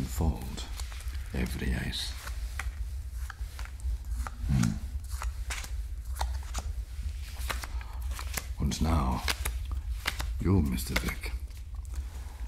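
Playing cards riffle and shuffle in a man's hands.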